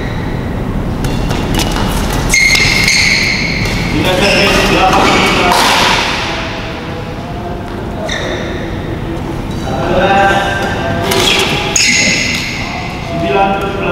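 Shoes squeak sharply on a court floor.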